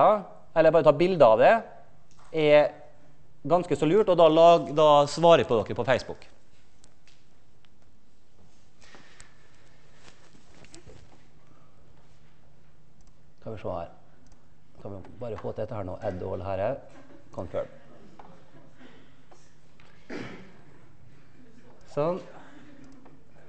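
A man lectures calmly through a microphone in a large room.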